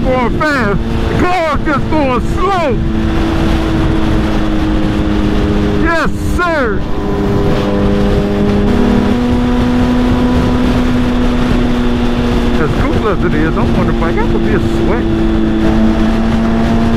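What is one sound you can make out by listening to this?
A Suzuki Hayabusa inline-four sportbike cruises at highway speed, revving between gear changes.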